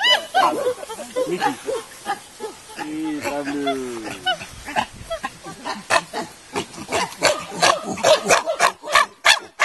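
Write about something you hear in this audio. Chimpanzees scream and hoot loudly close by.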